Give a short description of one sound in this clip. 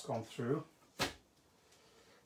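Stacked plastic plates clack down onto a table.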